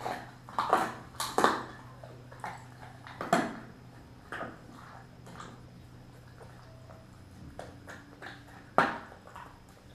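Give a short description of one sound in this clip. A dog barks and whines close by.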